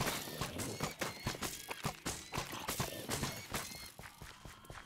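Swords clash and strike in rapid, sharp blows.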